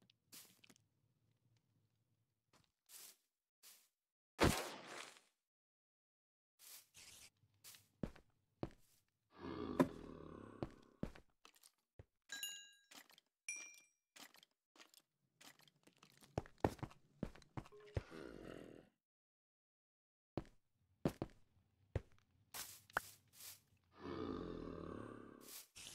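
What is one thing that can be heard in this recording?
Stone blocks are set down with short, dull knocks, one after another.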